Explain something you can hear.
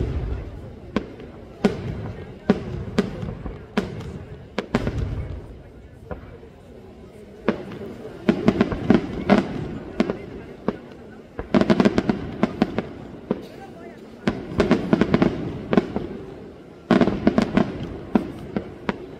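Fireworks bang and echo off the mountains in the distance.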